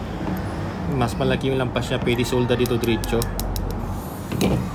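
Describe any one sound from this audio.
Metal pliers click and scrape against a small copper pipe.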